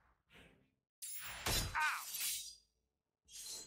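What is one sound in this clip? A metal pipe swings and strikes with a sharp whack.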